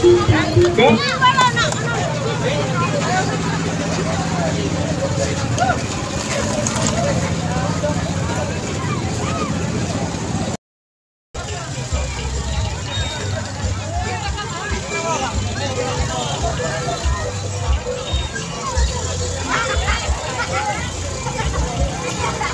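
A crowd chatters and shouts outdoors.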